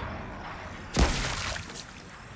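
A gunshot bangs loudly.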